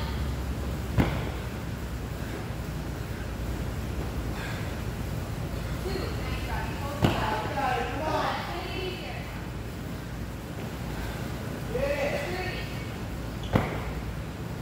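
Dumbbells thud heavily on a rubber floor.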